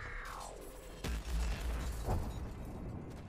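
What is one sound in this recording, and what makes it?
A rapid burst of gunfire rings out close by.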